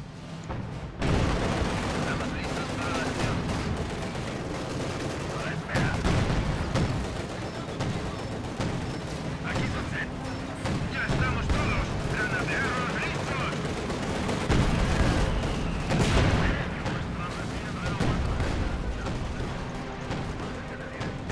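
Gunfire and explosions boom in a battle.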